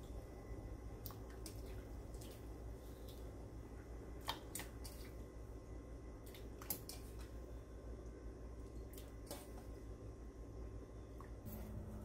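Food splashes as it drops into boiling water.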